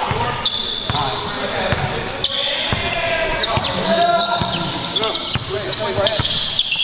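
A basketball bounces on a wooden floor in a large echoing gym.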